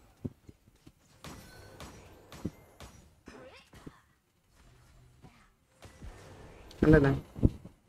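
Sharp magical strikes and hits crack in quick bursts during a fight.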